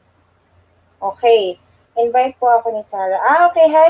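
A young woman speaks animatedly into a microphone, close by.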